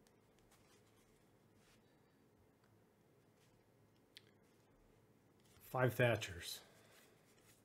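Trading cards rustle and slide softly as they are flipped through by hand.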